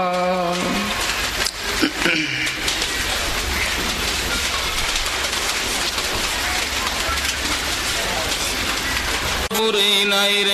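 A stream rushes and splashes over rocks.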